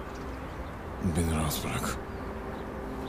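A man speaks in a low, weary voice close by.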